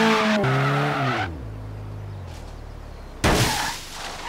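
A car engine revs high, then drops to a low rumble.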